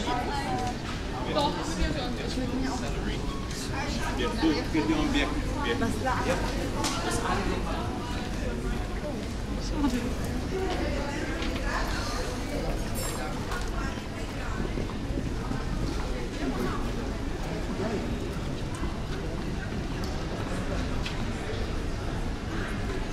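A crowd of people chatters nearby in a busy street.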